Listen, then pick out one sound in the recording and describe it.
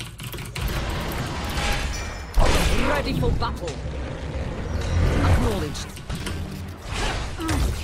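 Game sound effects of fighting clash and zap.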